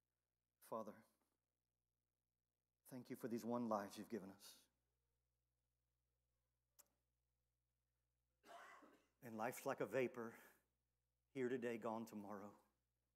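A man preaches calmly and earnestly through a microphone in a large hall.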